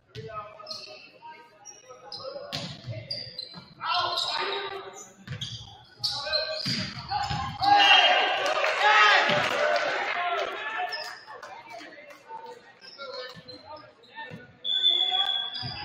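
Players shout and call to each other in a large echoing gym.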